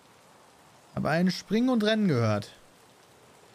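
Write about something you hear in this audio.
A man speaks briefly and with animation, close to a microphone.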